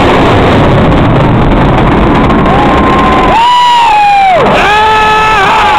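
A large crowd cheers.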